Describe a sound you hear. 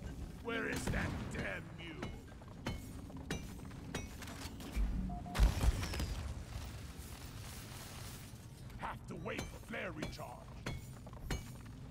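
A pickaxe chips at rock with sharp knocks.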